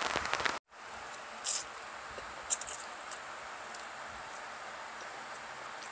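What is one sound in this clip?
A young woman slurps noodles loudly, close by.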